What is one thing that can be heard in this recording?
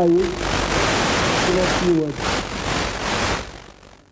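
A young man speaks into a microphone over a loudspeaker.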